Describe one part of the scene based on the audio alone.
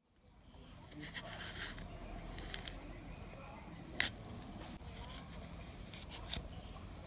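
A knife cuts through an apple with a crisp crunch.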